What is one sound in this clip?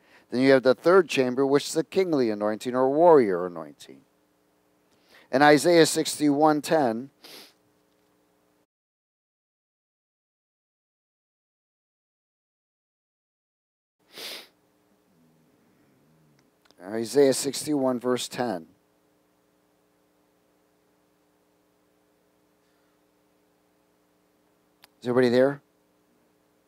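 A man speaks calmly into a microphone, in bursts with long pauses.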